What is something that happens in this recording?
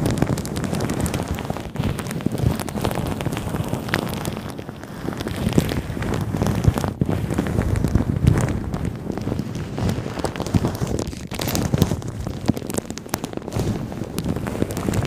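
Gloved hands crinkle and rustle against a microphone up close.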